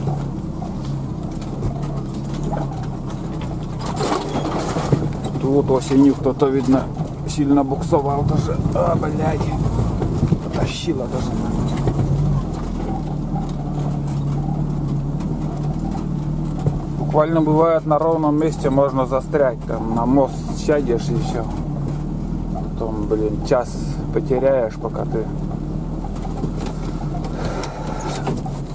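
Tyres crunch and rumble over packed snow.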